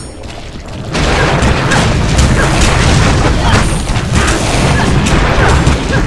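Magic blasts crackle and explode in a loud, busy fight.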